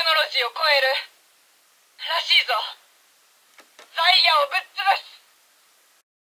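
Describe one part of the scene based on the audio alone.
A toy's tinny loudspeaker plays short recorded announcements.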